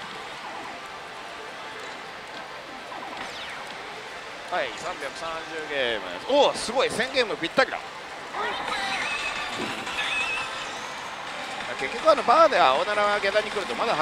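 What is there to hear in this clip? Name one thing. A slot machine plays electronic jingles and beeps.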